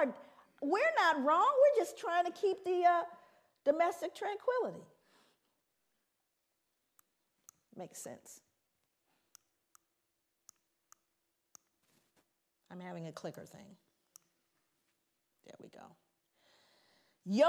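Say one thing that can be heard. A woman speaks with animation into a microphone.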